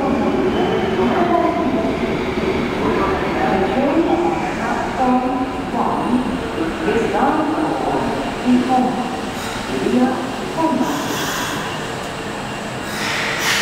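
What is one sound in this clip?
A train rumbles into an echoing underground station, growing louder as it nears.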